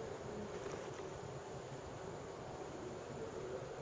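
A bead is set down softly on cloth.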